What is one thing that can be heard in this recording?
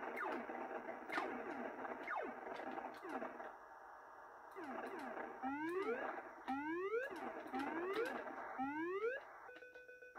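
A retro video game plays a steady, rough engine hum.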